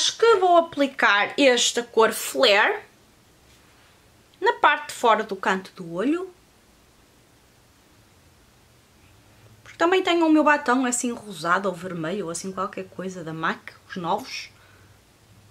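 A woman talks calmly and close to a microphone, in short bursts with pauses.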